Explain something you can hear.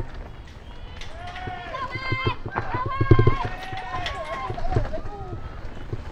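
A small crowd of onlookers shouts and cheers nearby.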